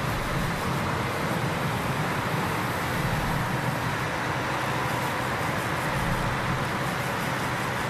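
A roadside crowd cheers and claps as cyclists pass.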